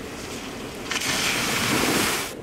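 Water splashes loudly as a bike rides through a puddle.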